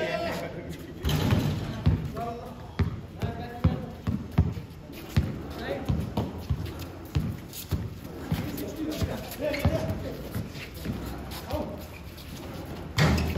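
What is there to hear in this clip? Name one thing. A basketball bounces on concrete.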